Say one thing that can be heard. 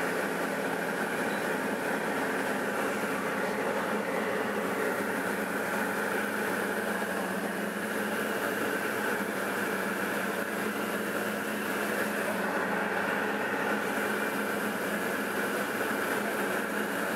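A light propeller plane's engine drones steadily, heard from inside the cabin.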